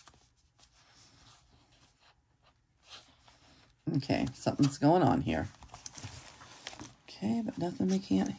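Paper rustles softly.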